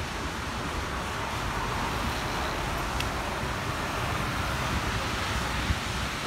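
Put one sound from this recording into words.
A car drives past on a wet road.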